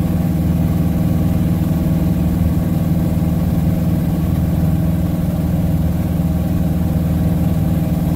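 A small plane's propeller engine drones loudly and steadily up close.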